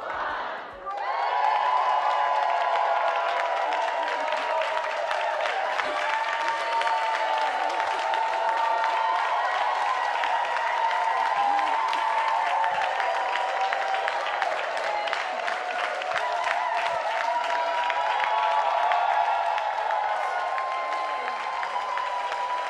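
A crowd claps along in a steady rhythm in a large hall.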